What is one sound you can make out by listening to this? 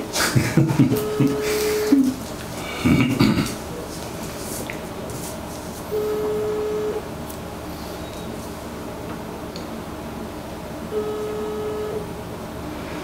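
A phone ringback tone beeps at slow, even intervals.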